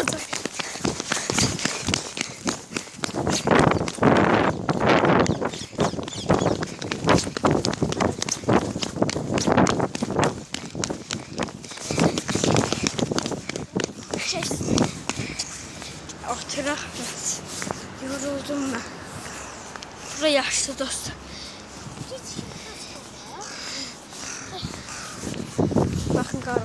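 A boy talks with animation close to a phone's microphone.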